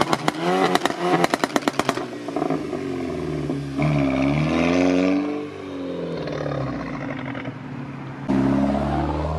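A car engine revs hard and roars close by.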